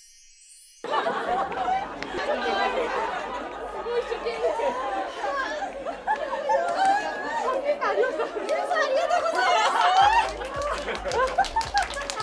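A crowd of people chatter and cheer excitedly nearby.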